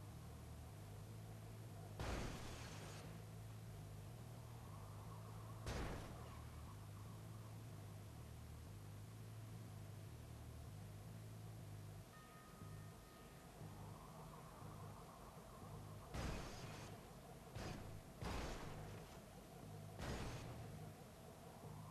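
A car engine hums and revs steadily.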